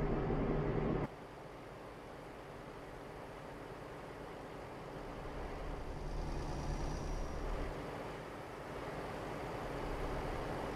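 A truck engine rumbles steadily at a distance.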